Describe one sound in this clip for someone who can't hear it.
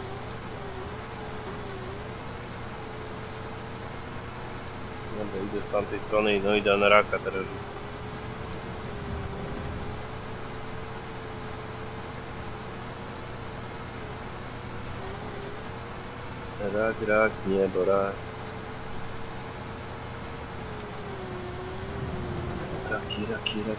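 An excavator engine hums steadily.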